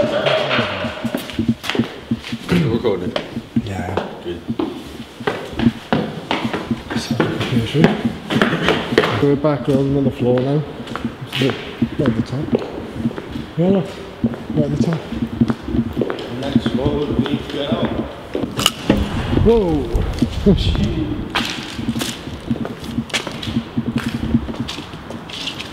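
A man talks casually close by, in a large echoing room.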